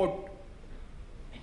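A man speaks briefly into a microphone.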